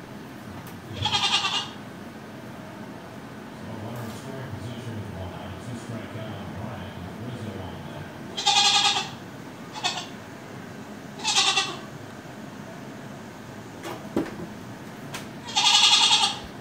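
A goat bleats loudly nearby, again and again.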